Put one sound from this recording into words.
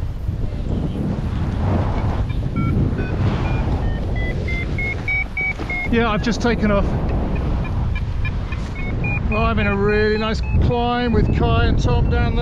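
Wind rushes loudly and steadily past.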